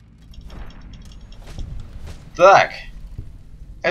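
A heavy blow lands on a man with a dull thud.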